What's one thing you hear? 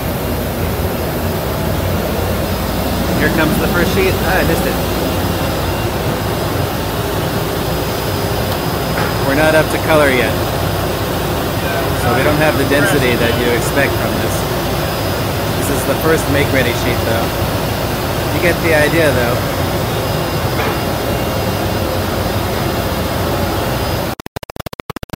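A printing press rumbles steadily.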